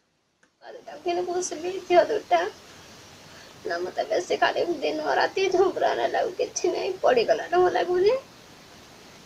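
A woman speaks in a worried voice close by.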